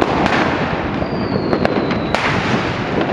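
A firework rocket whistles as it rises.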